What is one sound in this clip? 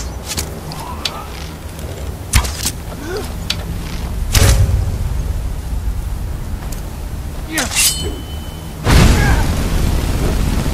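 A man groans and grunts in pain.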